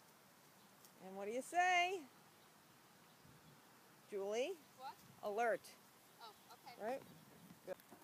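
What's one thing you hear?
A woman speaks to a dog nearby.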